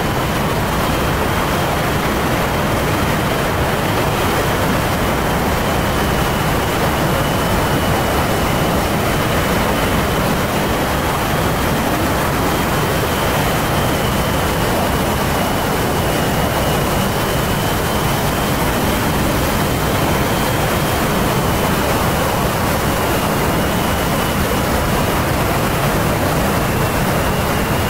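Jet engines roar steadily and loudly.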